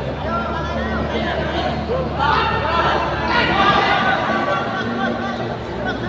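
A crowd of spectators shouts and cheers loudly nearby.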